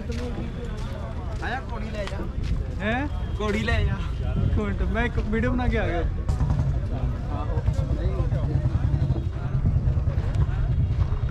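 A crowd murmurs outdoors in the distance.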